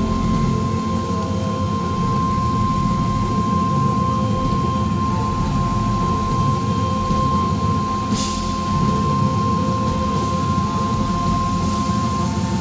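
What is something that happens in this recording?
An electric guitar plays loudly in a large echoing hall.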